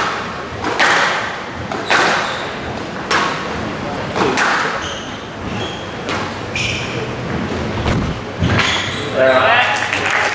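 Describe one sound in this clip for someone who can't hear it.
Sneakers squeak on a wooden court floor.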